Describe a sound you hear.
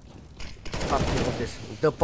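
Gunshots fire in rapid bursts.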